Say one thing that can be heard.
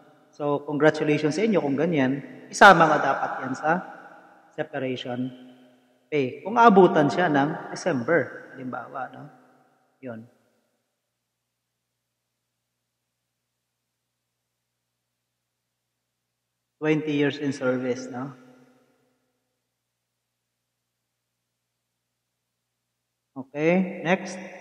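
A young man speaks calmly and closely into a microphone, with long pauses.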